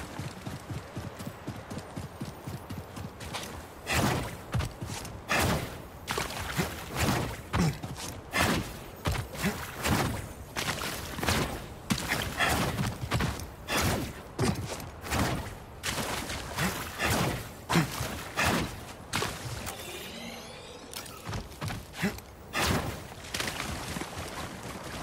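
Footsteps splash through shallow water and crunch on rock at a run.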